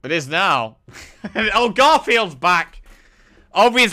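A young man laughs into a close microphone.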